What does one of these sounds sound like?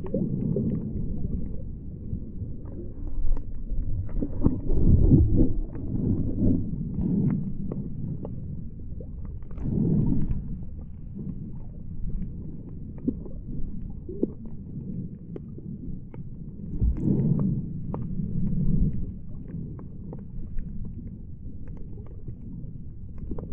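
Water gurgles and rumbles close by underwater.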